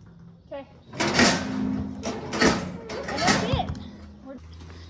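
A metal gate rattles and clangs.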